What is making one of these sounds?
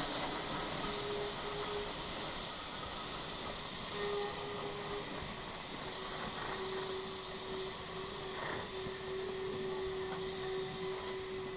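A steam locomotive chuffs and hisses loudly close by.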